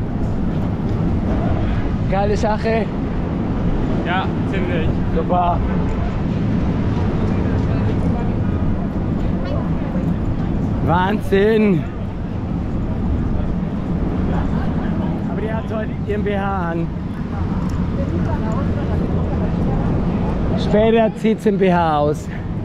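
A busy crowd murmurs outdoors in steady street noise.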